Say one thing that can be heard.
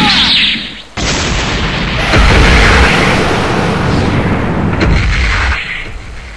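A loud rushing roar of energy surges and crackles.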